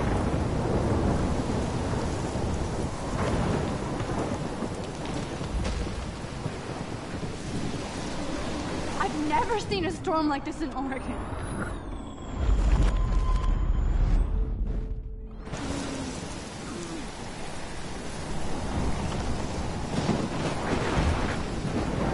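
A strong wind roars through trees in a storm.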